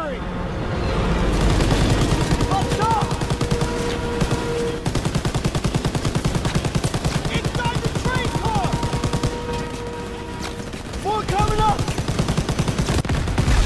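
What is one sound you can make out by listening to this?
A machine gun fires rapid, steady bursts close by.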